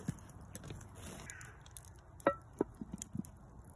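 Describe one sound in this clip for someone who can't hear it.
A metal lid clanks onto a frying pan.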